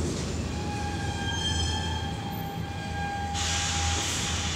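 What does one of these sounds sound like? A door chime sounds in a series of tones.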